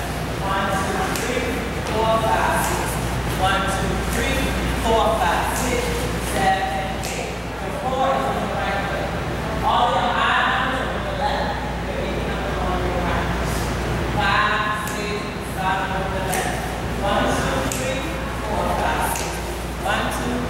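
Shoes shuffle and tap on a hard floor.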